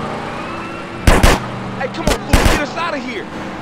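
Gunshots crack out in a few loud bursts.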